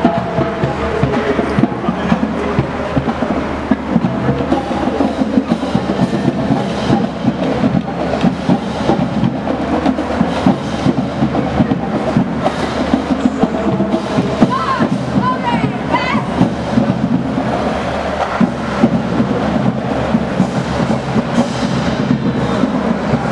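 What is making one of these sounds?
A marching band plays music outdoors.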